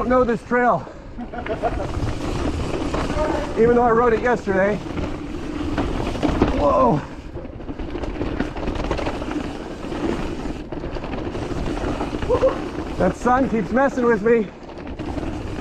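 A bicycle frame and chain rattle over bumps.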